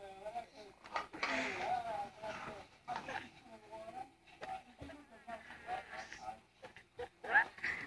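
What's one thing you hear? A woman talks nearby in a playful, high sing-song voice.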